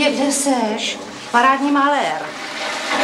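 A woman speaks tensely.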